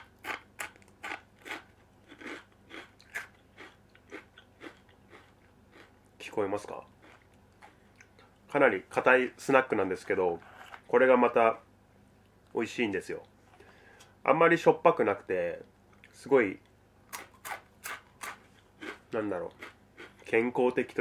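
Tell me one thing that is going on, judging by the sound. A man crunches a crisp snack close by.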